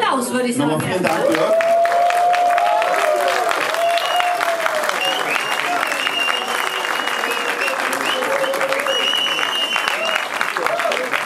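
A crowd applauds and cheers loudly in a large hall.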